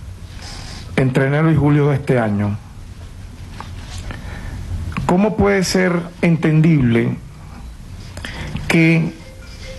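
A man reads out a statement calmly into a microphone.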